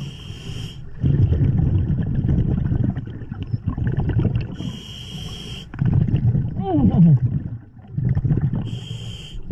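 Bubbles rumble and gurgle as a diver breathes out underwater.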